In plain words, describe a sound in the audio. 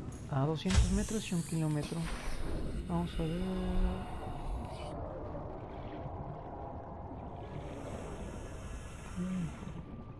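A muffled underwater rush swirls steadily as a diver swims.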